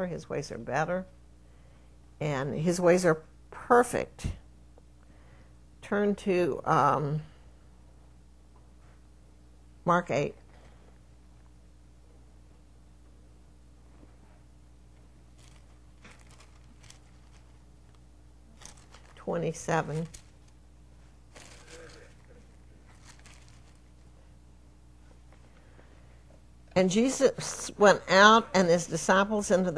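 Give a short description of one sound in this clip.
An elderly woman speaks slowly into a microphone, with long pauses.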